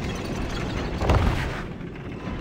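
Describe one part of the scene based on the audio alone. A heavy body lands with a dull thump on wood.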